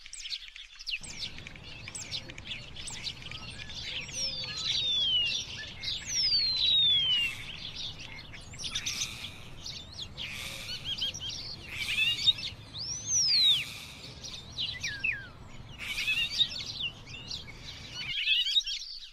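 A bird chirps and calls from close by.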